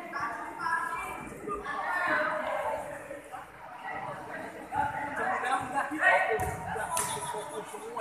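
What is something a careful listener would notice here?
Several young men talk and shout excitedly close by, in a large echoing hall.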